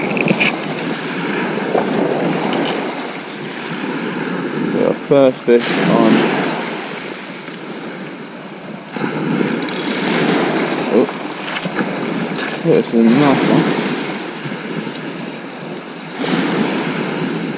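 A fishing spinning reel is cranked.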